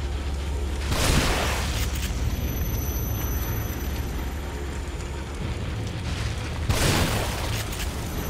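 A gun fires loud shots that echo briefly.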